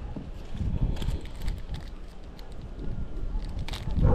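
A plastic bag rustles in a man's hands.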